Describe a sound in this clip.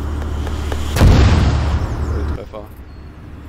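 An explosion booms loudly nearby and dies away.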